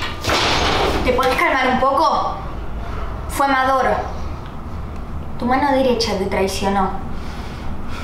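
A young woman speaks earnestly up close.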